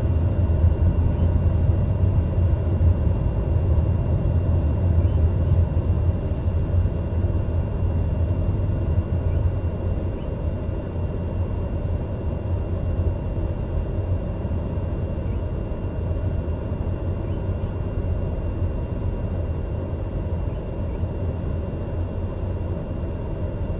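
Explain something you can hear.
A single-engine turboprop hums at low power while taxiing, heard from inside the cockpit.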